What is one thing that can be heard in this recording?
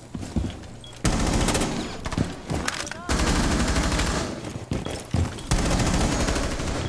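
Gunfire rattles in rapid bursts close by.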